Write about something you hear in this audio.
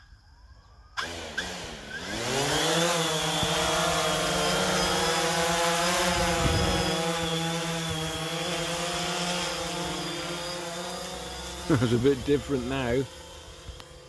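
A drone's rotors spin up and whine steadily with a high buzzing hum.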